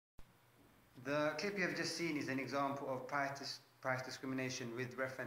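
A young man speaks calmly, close to the microphone.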